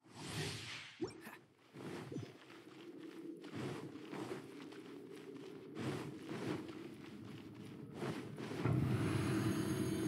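Footsteps patter quickly on stone as a game character runs.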